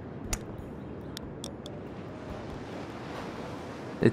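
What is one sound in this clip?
A putter taps a golf ball with a soft click.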